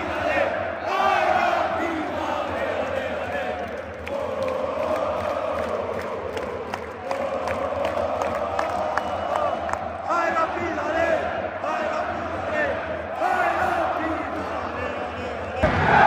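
A huge crowd chants and sings loudly in a large echoing stadium.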